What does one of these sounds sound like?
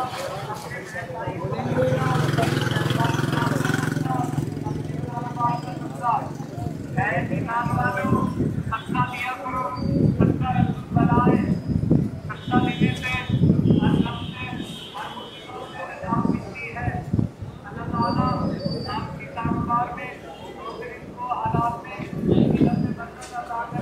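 A busy street crowd murmurs in the background.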